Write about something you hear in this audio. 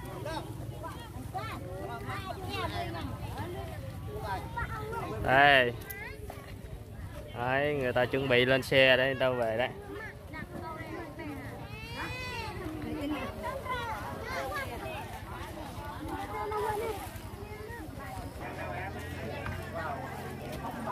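A crowd of men and women chatter outdoors.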